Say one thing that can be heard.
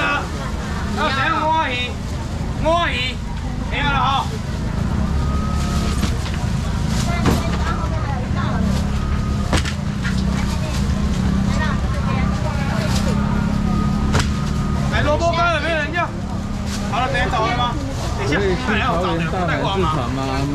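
A crowd of men and women chatters and calls out in a busy, echoing hall.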